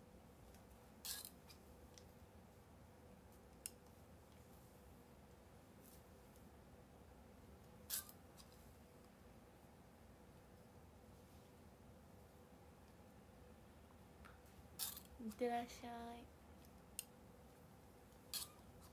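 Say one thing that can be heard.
A curling iron's clamp clicks open and shut now and then.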